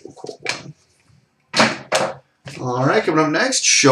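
A plastic card is set down on a glass counter.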